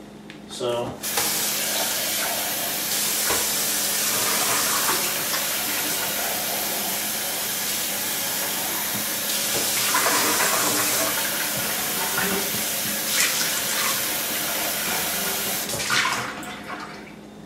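Dishes clink against a metal sink.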